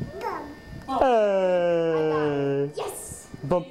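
A toddler squeals and babbles in a high voice close by.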